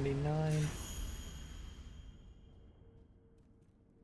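A shimmering magical chime rings out and slowly fades.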